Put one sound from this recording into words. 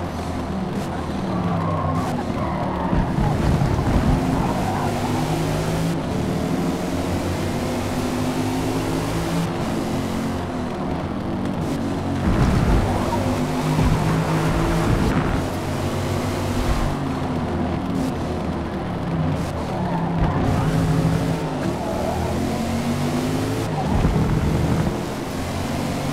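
A car engine roars, revving up and down through the gears.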